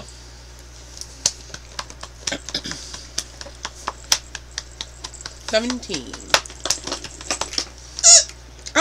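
Plastic game pieces click and rattle against a board.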